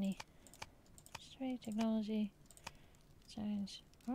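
A short soft click sounds as a menu page changes.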